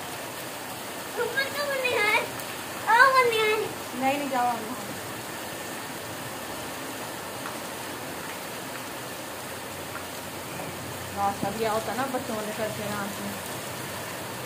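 A young boy shouts and calls out excitedly.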